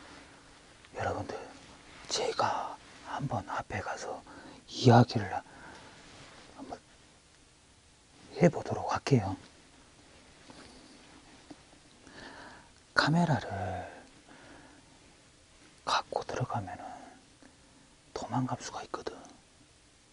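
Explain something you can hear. A young man talks quietly in short bursts, close by.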